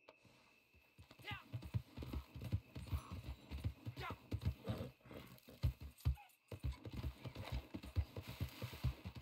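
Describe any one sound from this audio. A horse's hooves thud quickly on soft ground.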